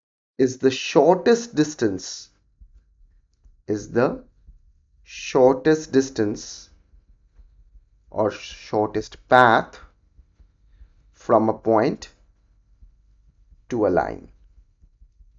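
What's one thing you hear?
A man explains calmly through a close microphone, in short bursts with pauses.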